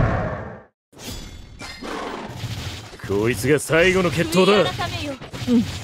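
Video game combat effects crack and blast in quick bursts.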